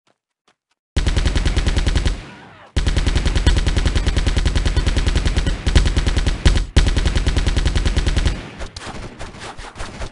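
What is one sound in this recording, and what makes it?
A machine gun fires long, rapid bursts of shots.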